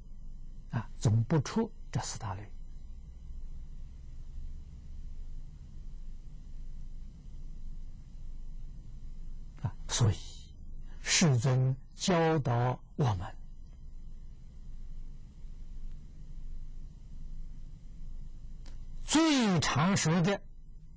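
An elderly man speaks calmly into a close microphone, with long pauses.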